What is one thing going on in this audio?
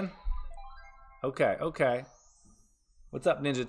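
Electronic slot machine chimes ring in quick rising steps.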